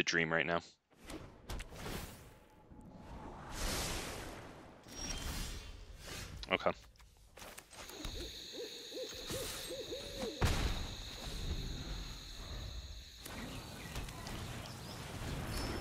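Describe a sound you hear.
A card game plays soft whooshes and chimes as cards move.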